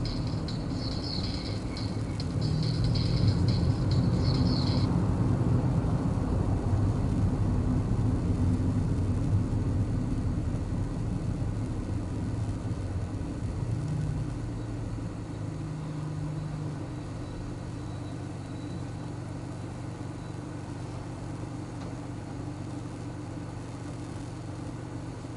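A car engine hums low and steady, heard from inside the car.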